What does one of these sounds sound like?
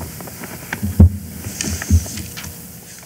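A heavy scroll knocks with dull thuds as it is lifted.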